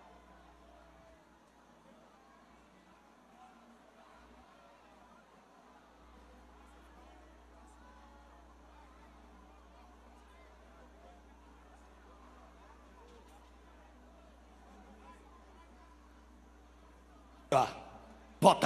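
A large crowd chatters and murmurs outdoors, heard from above at a distance.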